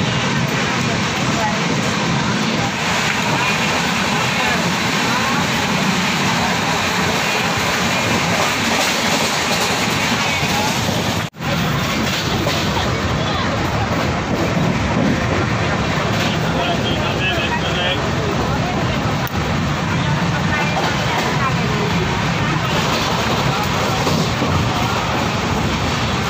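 A passenger train rumbles and rattles along the tracks.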